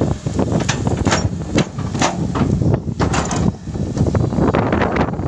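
An excavator engine rumbles steadily close by.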